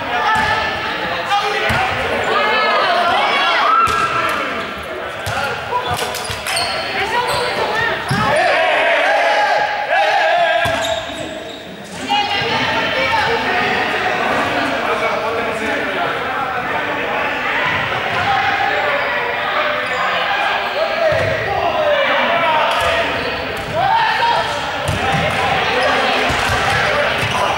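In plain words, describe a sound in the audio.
Many children and adults shout and call out in a large echoing hall.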